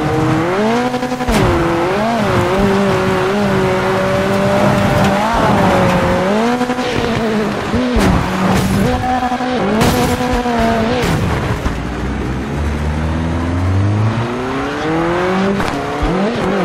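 A racing engine roars and revs up and down through gear changes.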